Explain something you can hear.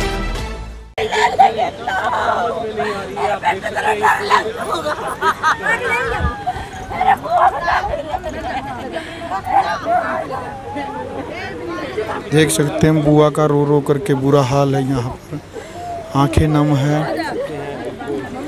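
A crowd of women chatter and call out loudly close by.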